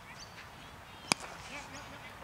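A cricket bat strikes a ball with a sharp knock in the distance.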